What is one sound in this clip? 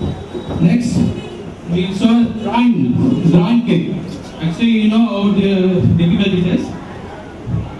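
A man speaks loudly through a microphone over loudspeakers.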